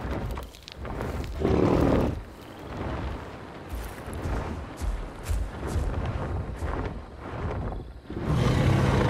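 Large wings beat heavily through the air.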